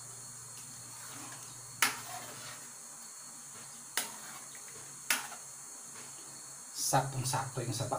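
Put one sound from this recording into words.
A soup simmers and bubbles gently in a pan.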